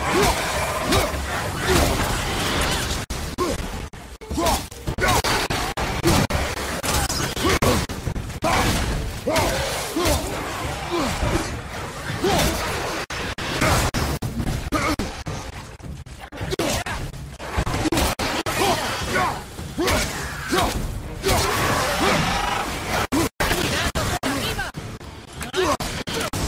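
Creatures snarl and grunt as they attack.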